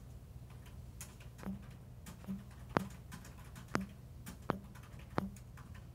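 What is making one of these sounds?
A phone's keyboard clicks with each quick tap.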